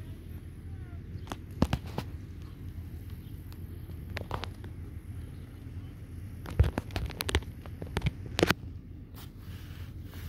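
A horse trots on soft sand.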